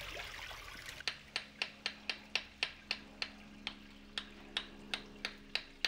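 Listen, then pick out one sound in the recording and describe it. A hammer taps rapidly on a chisel against stone.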